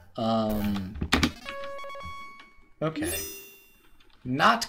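Electronic game chimes and blips ring out.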